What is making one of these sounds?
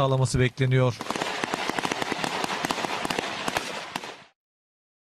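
Rifle shots crack rapidly outdoors.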